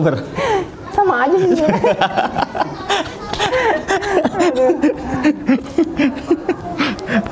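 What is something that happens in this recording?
Two men laugh loudly together.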